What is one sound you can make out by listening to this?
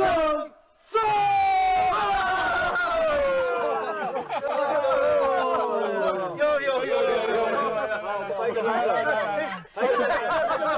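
A group of men and women shout together in a long chant.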